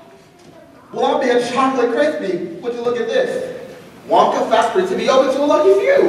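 A young man sings loudly in a large echoing hall.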